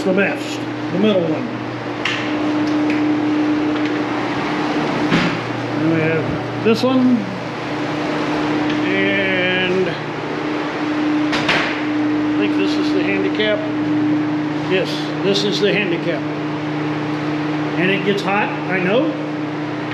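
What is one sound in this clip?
An older man talks calmly close by in an echoing tiled room.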